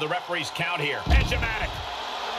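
A wrestler's body thuds onto the floor.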